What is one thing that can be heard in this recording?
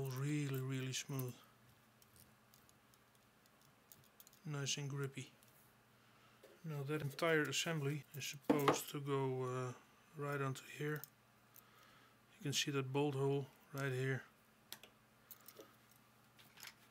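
Plastic toy parts click and rattle in a hand.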